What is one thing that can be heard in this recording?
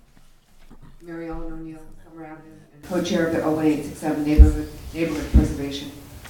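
An elderly woman speaks steadily into a microphone.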